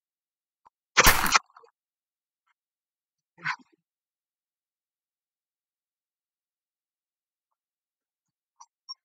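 Short electronic game sound effects play in quick bursts.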